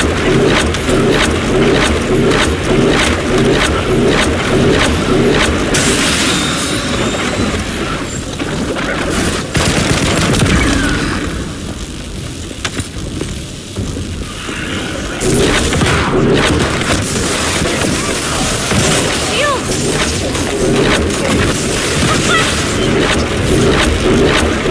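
Jet boosters roar steadily.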